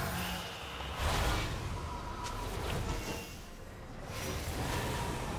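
Magical spell effects whoosh and crackle.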